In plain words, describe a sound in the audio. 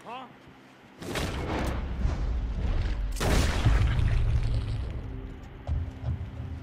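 Gunshots ring out loudly, one after another.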